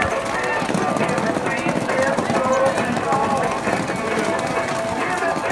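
Horses' hooves pound on soft dirt at a gallop.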